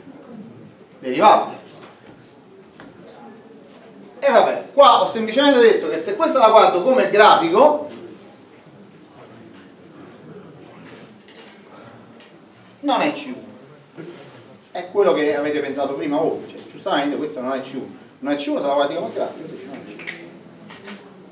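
A middle-aged man lectures in a slightly echoing room, in bursts with pauses.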